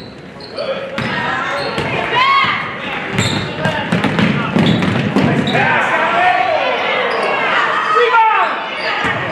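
A crowd cheers and shouts in a large echoing gym.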